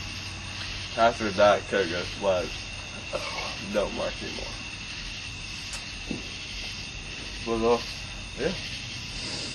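A young man gasps.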